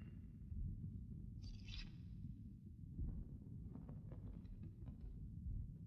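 Paper rustles softly in a woman's hands.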